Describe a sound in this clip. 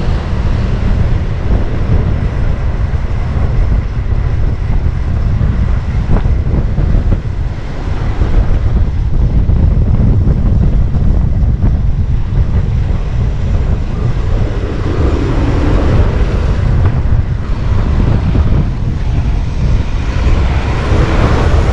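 City traffic rumbles along a busy street.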